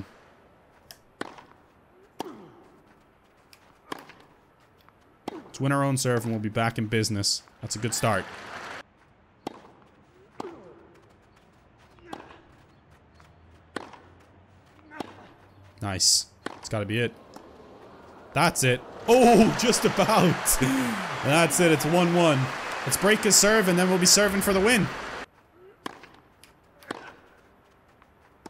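A tennis ball is struck back and forth with rackets.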